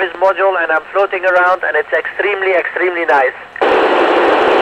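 A man speaks briefly over a crackly radio link.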